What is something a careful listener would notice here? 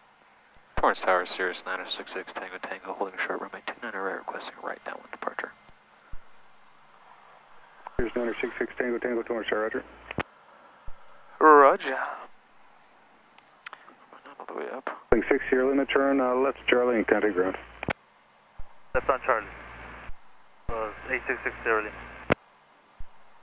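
A man speaks calmly over a crackly headset intercom.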